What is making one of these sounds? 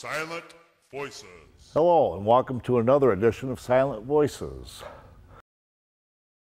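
A man speaks calmly and earnestly into a close microphone.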